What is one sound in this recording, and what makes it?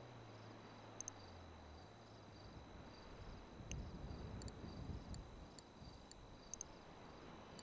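Short interface clicks sound as menu links are selected.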